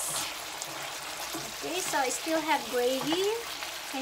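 A wooden spatula scrapes and stirs food in a pan.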